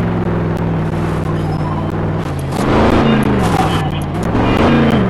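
A truck engine roars and revs loudly.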